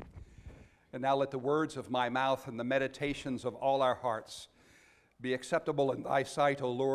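A middle-aged man speaks calmly into a microphone, heard through a loudspeaker in an echoing hall.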